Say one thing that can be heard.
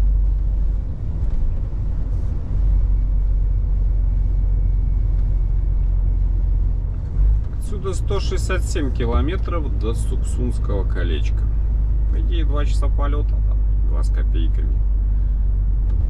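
A vehicle engine hums steadily with a low road rumble.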